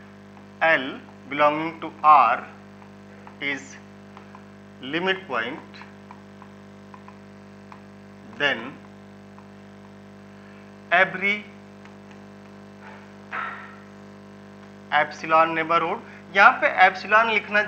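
A man speaks calmly and clearly through a close microphone, in short phrases with pauses.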